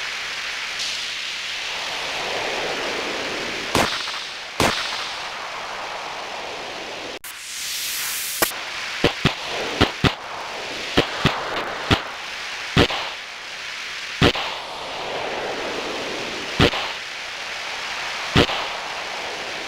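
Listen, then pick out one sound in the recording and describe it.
A snowboard hisses steadily over snow.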